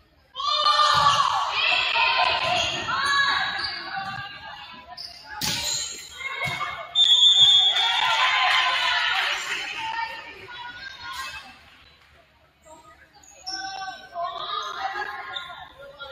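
A crowd cheers and shouts in an echoing gym.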